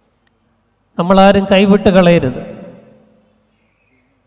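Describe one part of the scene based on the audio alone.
A man speaks loudly into a microphone, with his voice echoing through a large hall.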